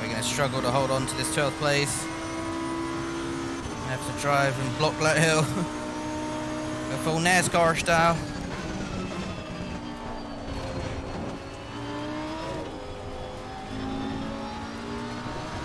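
A racing car engine roars and changes pitch as gears shift.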